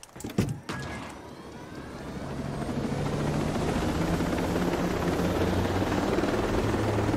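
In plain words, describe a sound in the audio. A light helicopter's rotor spins up and the helicopter lifts off.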